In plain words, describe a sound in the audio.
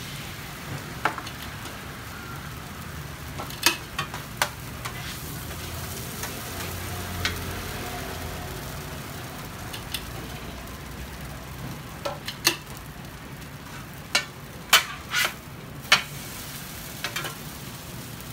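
Metal spatulas scrape and clack against a hot griddle.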